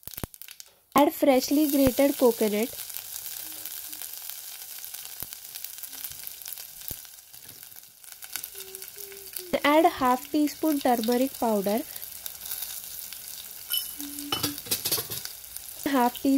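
Oil sizzles and crackles softly in a pan.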